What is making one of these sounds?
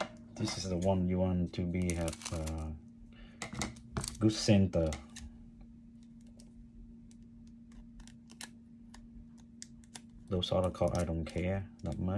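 A plastic card sleeve rustles softly in a hand.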